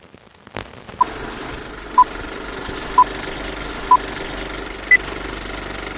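A countdown beeps short high tones once a second.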